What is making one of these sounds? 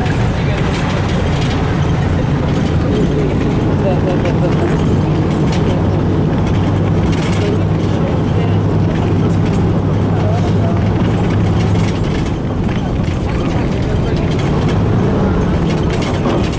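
The bus rattles and rumbles as it drives over a rough road.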